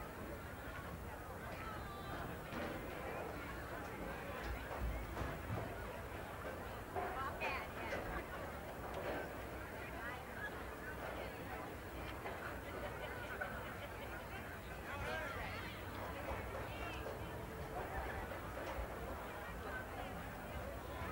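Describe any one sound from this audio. A large crowd murmurs and chatters in outdoor stands.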